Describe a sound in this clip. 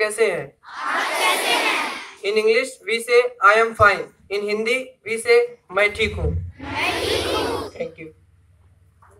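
A teenage boy reads aloud loudly into a microphone, heard through a loudspeaker outdoors.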